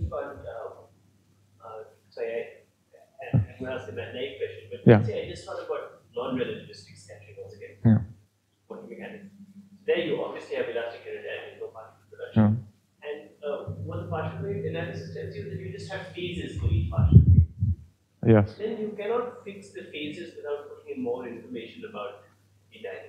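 A young man speaks calmly through a headset microphone.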